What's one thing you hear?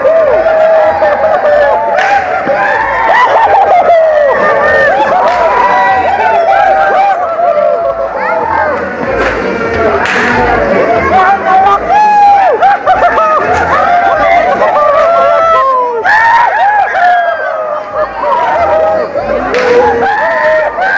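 A large crowd shouts and whoops loudly.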